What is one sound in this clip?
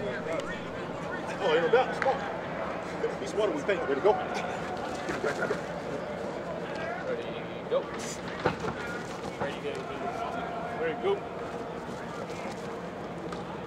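Cleats scuff and thud on artificial turf.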